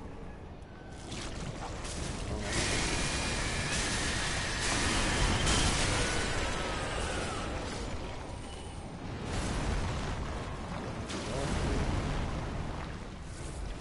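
Metal weapons clash and strike in a heavy fight.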